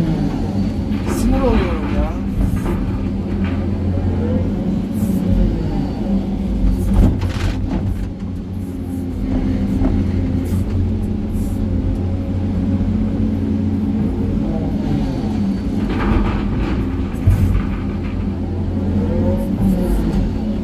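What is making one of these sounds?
A heavy diesel engine rumbles steadily from inside an excavator cab.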